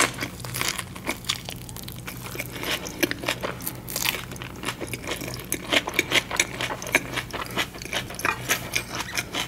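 A woman bites and chews a soft rice paper roll close to a microphone, with wet smacking sounds.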